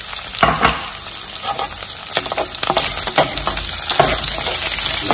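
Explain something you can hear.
Oil sizzles steadily in a pan.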